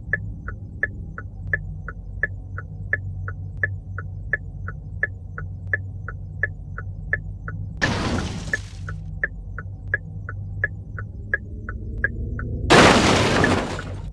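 A car engine hums steadily and revs up.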